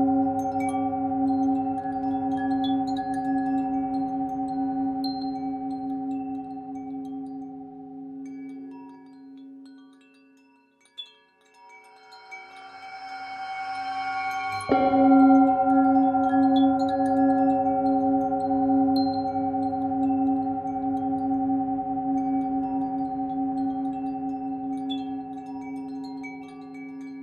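A singing bowl rings with a steady, humming tone that swells and fades.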